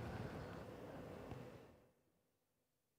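A digger's engine rumbles loudly.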